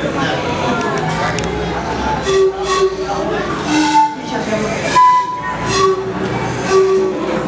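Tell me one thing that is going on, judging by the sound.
A man plays a harmonica.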